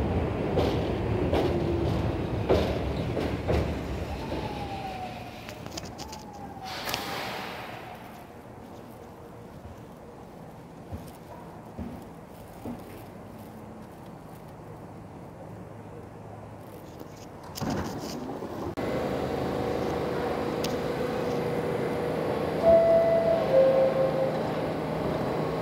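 A subway train rumbles and hums at a station platform.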